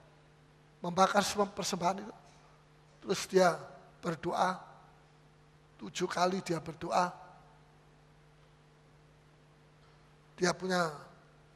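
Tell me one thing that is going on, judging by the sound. A middle-aged man preaches with animation in short bursts, heard through a microphone in an echoing hall.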